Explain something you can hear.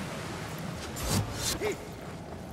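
A heavy axe swings through the air with a whoosh.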